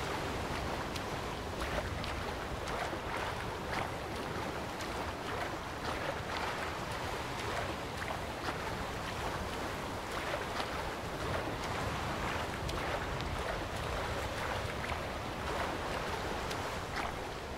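Choppy waves slosh and splash steadily.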